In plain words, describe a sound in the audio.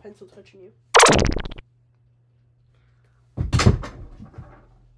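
A microphone is bumped with loud thuds.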